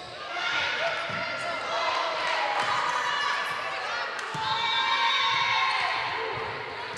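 Young women shout and call to each other in a large echoing hall.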